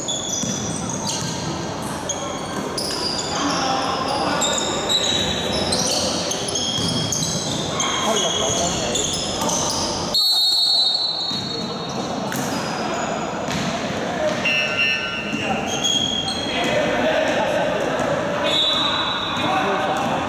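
Basketball shoes squeak on a hardwood court in a large echoing hall.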